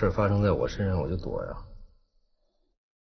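A man speaks in a low, subdued voice.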